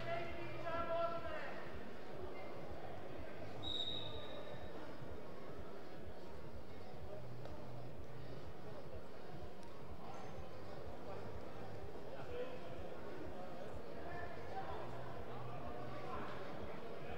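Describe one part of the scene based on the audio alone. A few spectators murmur faintly in a large echoing hall.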